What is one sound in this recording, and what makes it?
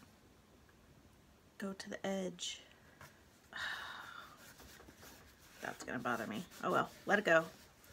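Hands rub and smooth paper against a board.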